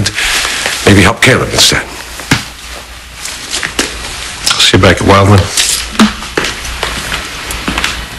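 A man speaks sharply and close by.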